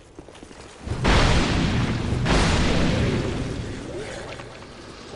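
A sword strikes an armoured foe with a heavy crash.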